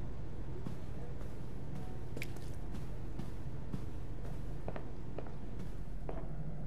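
A woman's footsteps tap on the floor.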